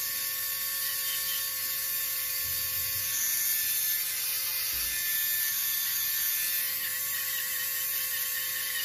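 An electric nail drill whirs with a steady high whine as it grinds a toenail.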